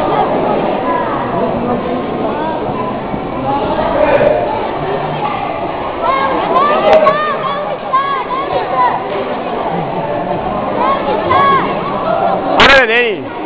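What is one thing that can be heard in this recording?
A crowd of spectators chatters and calls out in a large echoing hall.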